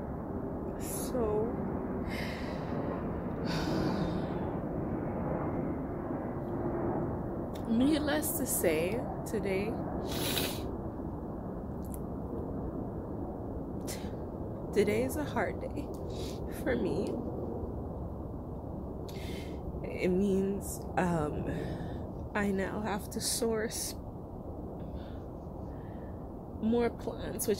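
A young woman speaks close by, quietly and with pauses.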